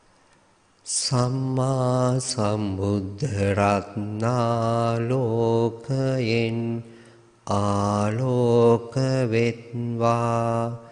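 A man chants in a low, steady voice through a microphone.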